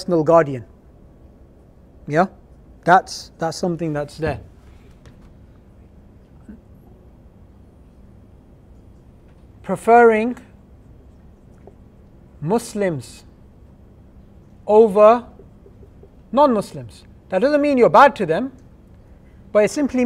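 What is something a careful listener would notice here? A man speaks calmly nearby, in short bursts with pauses.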